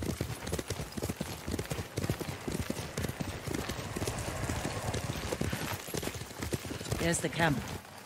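Horses gallop over grass with rapid hoofbeats.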